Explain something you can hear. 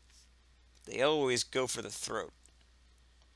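Menu selections chime with short electronic tones.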